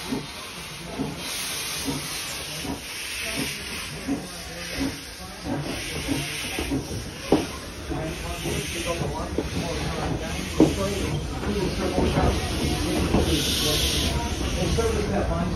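Steam hisses from a locomotive in bursts.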